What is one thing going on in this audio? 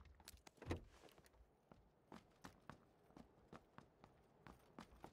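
Footsteps tap on hard ground at a steady walking pace.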